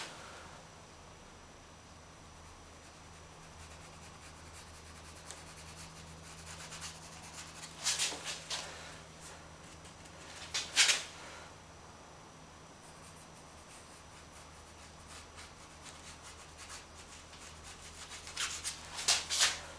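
A hand rubs and scrapes paper across a painted board.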